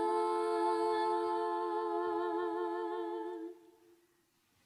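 A man chants a long, sustained note that fades out.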